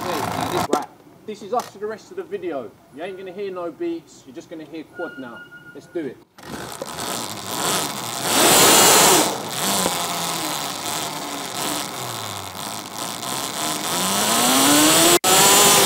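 An electric quad bike's motor whines, rising in pitch as it accelerates.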